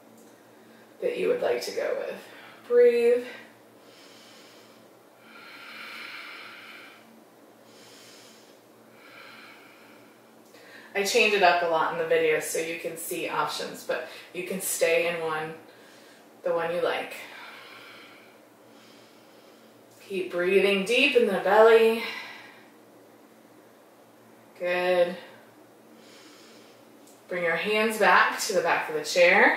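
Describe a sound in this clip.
A woman speaks calmly, as if giving instructions, close to a microphone.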